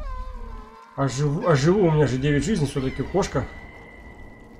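A small animal whines with a wavering cry.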